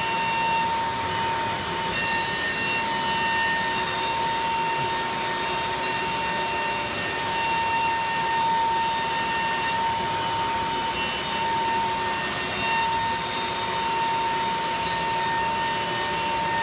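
A cutting machine's head whirs steadily with a high hum as it moves along its gantry.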